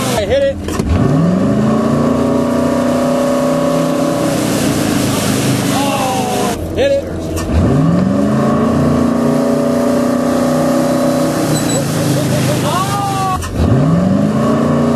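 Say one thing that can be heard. A motorboat engine roars and climbs in pitch as the boat speeds up.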